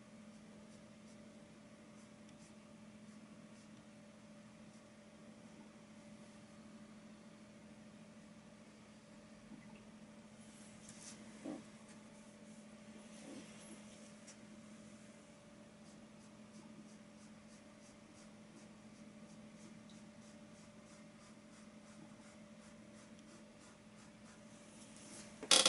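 A paintbrush strokes softly across a canvas.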